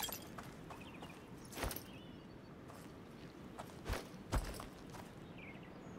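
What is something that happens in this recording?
Footsteps thud softly on dirt.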